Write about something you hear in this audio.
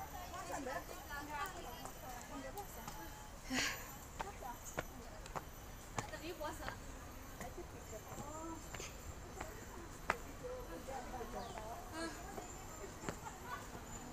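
Footsteps climb stone stairs outdoors.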